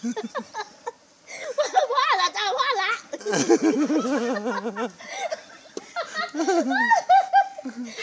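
A middle-aged woman talks and laughs cheerfully close by.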